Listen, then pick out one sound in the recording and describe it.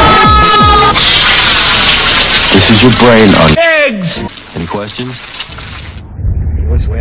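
Eggs sizzle loudly in a hot frying pan.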